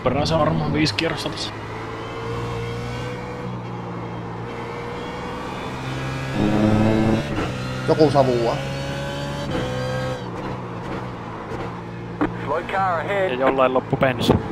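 A race car engine hums steadily and rises and falls in pitch through gear changes.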